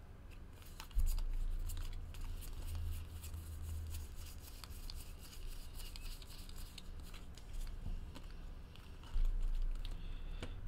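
Trading cards rustle and flick as they are shuffled through by hand.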